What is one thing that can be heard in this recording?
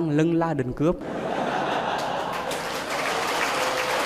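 A crowd of young men laughs loudly.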